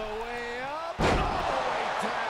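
A heavy body slams hard onto a wrestling ring mat.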